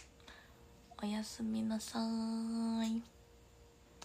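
A young woman sings a few short, held notes close by.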